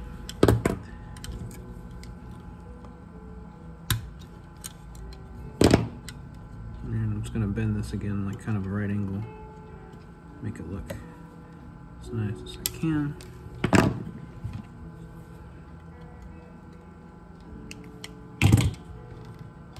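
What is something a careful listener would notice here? Small metal parts click and knock against a metal box.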